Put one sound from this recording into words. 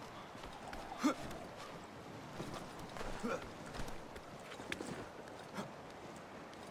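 A climber's hands grip and scrape against tree bark and branches.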